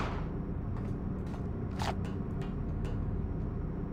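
Footsteps thud softly on a metal floor.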